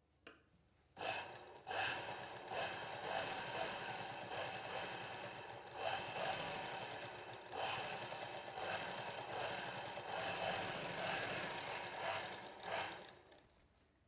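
A sewing machine runs, its needle stitching rapidly.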